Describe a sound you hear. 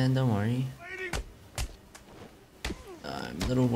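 Blows thud and crack in a brawl.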